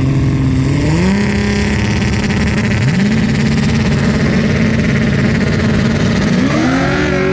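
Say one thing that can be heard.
A car engine idles loudly and revs up in sharp bursts.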